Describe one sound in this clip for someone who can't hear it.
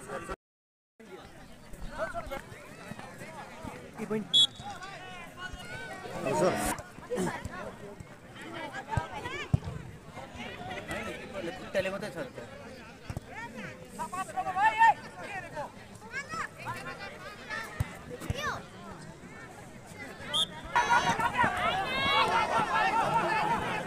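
A football thuds as players kick it.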